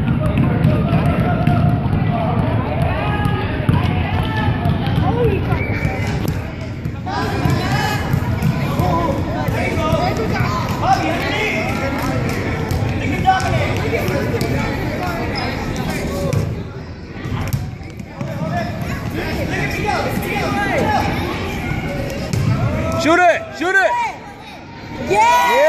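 Young children shout and chatter in a large echoing hall.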